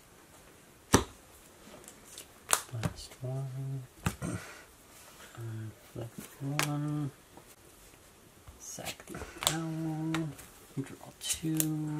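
Playing cards tap and slide on a tabletop mat.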